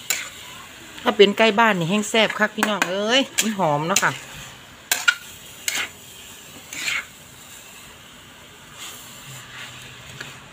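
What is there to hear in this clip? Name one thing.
A metal spatula scrapes and clatters against a pan as food is stirred.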